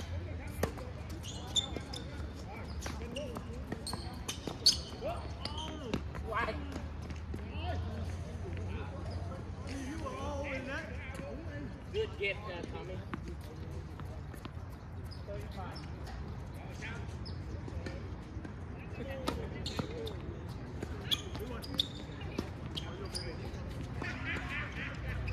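Distant voices talk and call out outdoors.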